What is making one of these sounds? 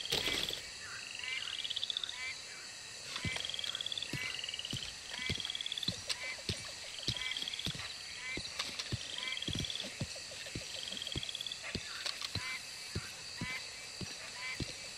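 Footsteps fall steadily on stone.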